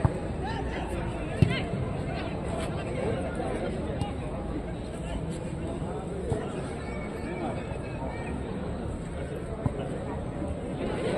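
A crowd of spectators chatters and calls out in an open stadium.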